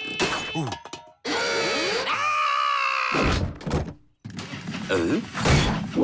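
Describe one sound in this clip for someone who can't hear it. A cartoon character speaks in a high, excited voice.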